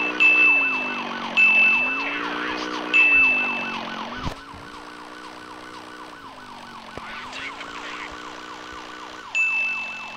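A police siren wails quickly up and down.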